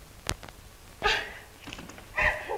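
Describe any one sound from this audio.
A woman sobs.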